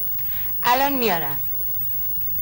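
A woman cries out with emotion nearby.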